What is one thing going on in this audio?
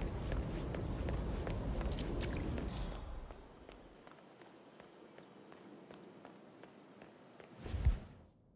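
Footsteps walk on wet pavement outdoors.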